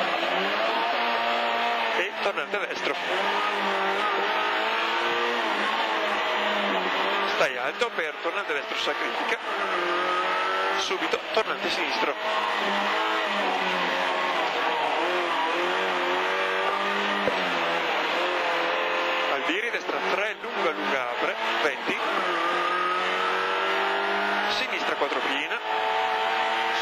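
A rally car engine revs hard at full throttle, heard from inside the cabin, rising and dropping between gear changes.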